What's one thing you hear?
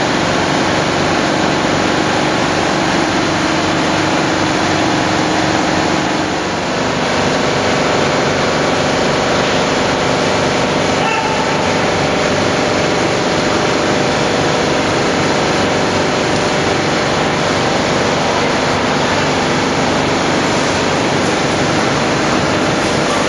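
A loud steady roar of machinery fills a large echoing hall.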